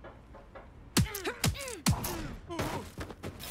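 A sharp blow lands in a brief scuffle.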